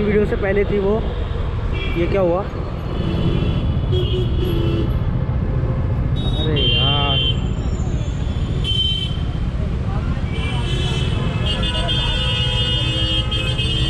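Car horns honk in busy traffic.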